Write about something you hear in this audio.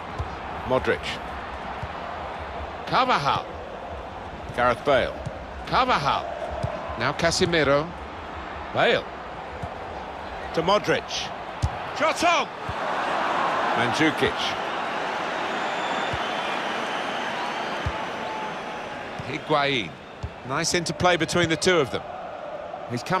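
A large stadium crowd murmurs and roars.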